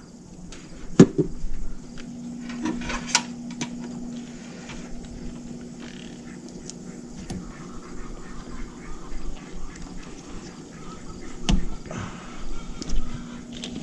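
Plastic connectors click and rattle as hands handle them.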